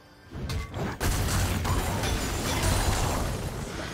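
A fiery blast roars and crackles.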